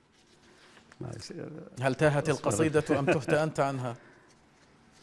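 An elderly man talks into a microphone.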